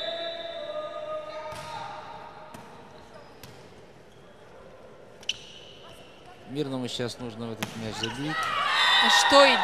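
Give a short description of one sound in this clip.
A volleyball is struck hard, with sharp slaps echoing in a large hall.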